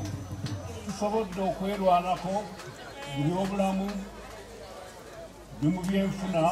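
A man speaks calmly over a loudspeaker outdoors.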